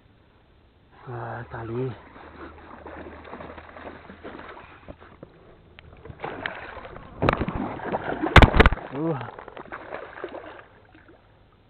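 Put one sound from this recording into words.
A fish thrashes and splashes in shallow water.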